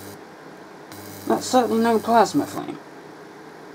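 A small electric spark buzzes and crackles.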